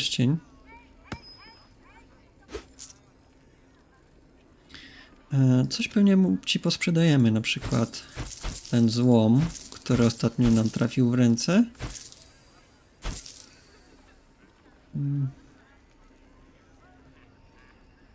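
Short game interface clicks sound as items are moved.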